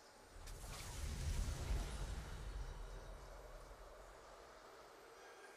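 A booming game victory fanfare swells and slowly fades.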